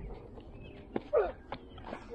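A cricket bat strikes a ball with a sharp knock.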